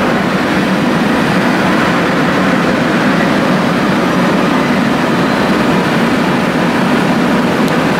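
A train rumbles past loudly on rails.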